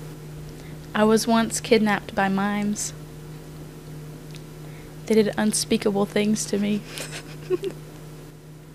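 A teenage girl speaks into a close microphone.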